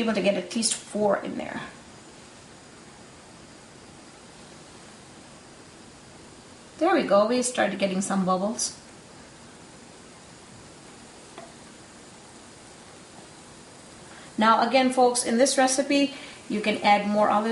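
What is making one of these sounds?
A woman talks calmly nearby.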